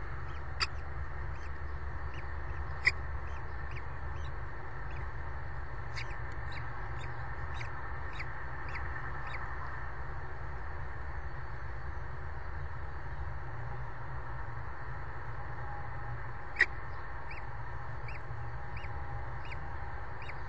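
A bird chick peeps softly, over and over.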